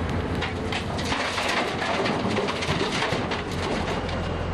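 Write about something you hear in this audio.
Dirt and gravel pour with a rushing clatter into a truck bed.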